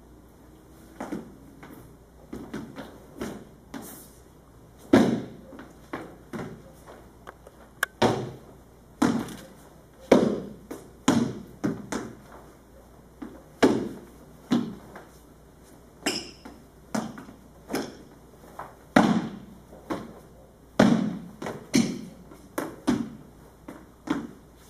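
Feet stamp and shuffle on a wooden floor in sharp bursts.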